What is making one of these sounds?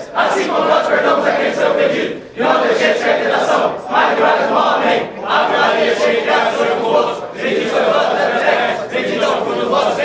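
A group of men pray aloud together in unison, close by in a room with hard walls.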